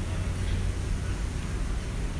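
An escalator hums steadily in a large echoing hall.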